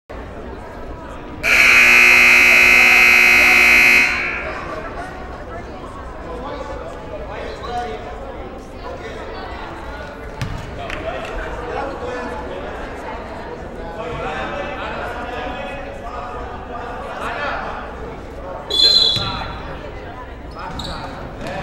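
A crowd chatters throughout.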